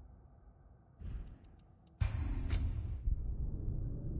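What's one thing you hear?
Menu sounds click and chime sharply.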